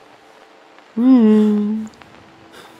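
An elderly man lets out a loud, drawn-out groan close by.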